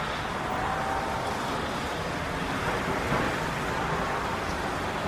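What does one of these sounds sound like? Steady traffic roars along a busy highway.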